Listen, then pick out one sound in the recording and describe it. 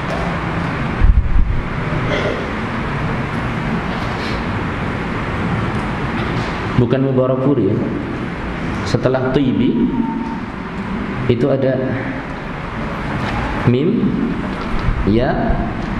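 A man speaks calmly into a microphone, heard through a loudspeaker with some echo.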